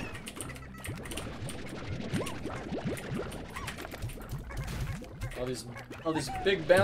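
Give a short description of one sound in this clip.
Cartoonish squishy blips and pops from a game sound off again and again.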